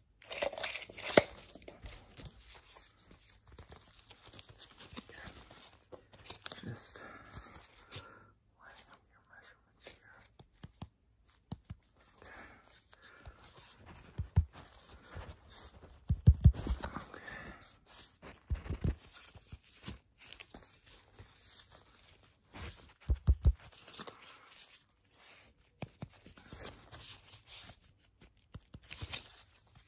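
Rubber gloves rustle and squeak close by.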